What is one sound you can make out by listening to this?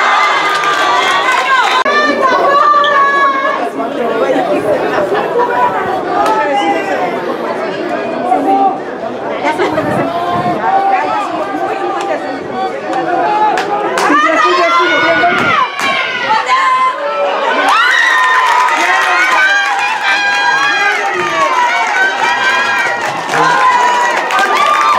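Many young men shout and cheer loudly outdoors.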